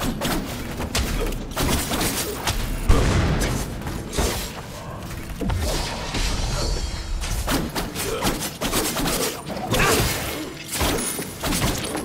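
Swords clash and slash repeatedly in a fight.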